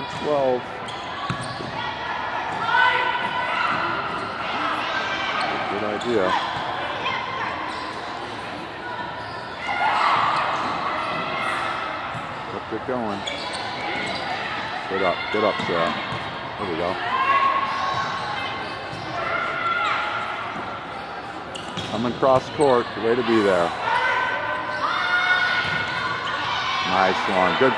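Players' shoes squeak sharply on the court floor.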